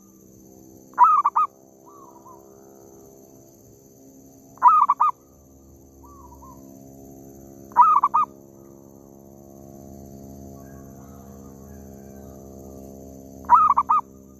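A bird calls loudly in short bursts, again and again, close by.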